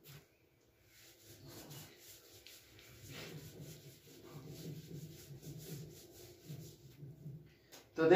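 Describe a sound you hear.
A cloth rubs across a board, wiping it clean.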